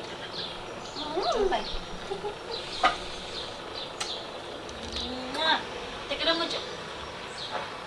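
A small child babbles and whimpers.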